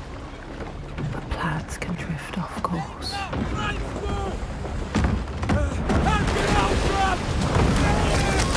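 Men shout loudly over a storm.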